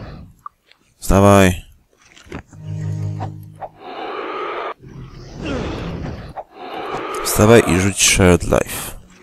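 A giant monster roars loudly.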